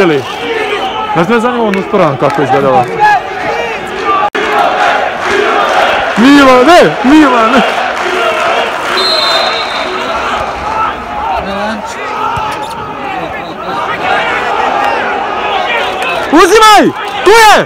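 Young men shout from a distance across a large, echoing stadium.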